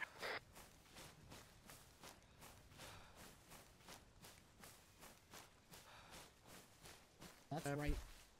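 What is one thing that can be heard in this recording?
Footsteps crunch through dry grass and leaves at a steady walking pace.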